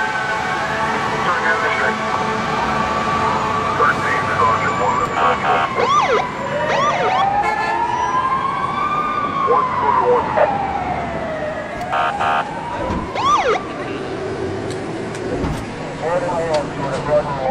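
A siren wails.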